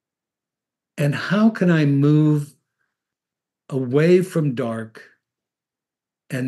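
An elderly man speaks calmly into a microphone, as if on an online call.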